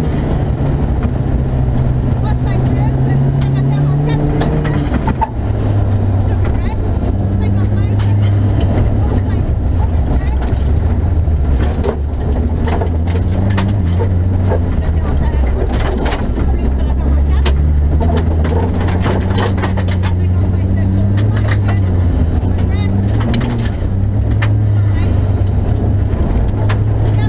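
Gravel and stones rattle against the car's underside.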